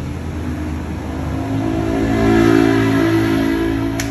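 A motor scooter engine hums nearby.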